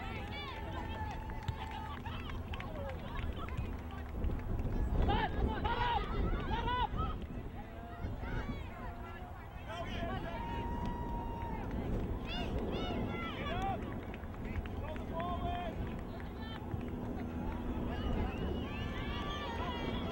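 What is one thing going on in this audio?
Spectators on the sideline shout and cheer outdoors.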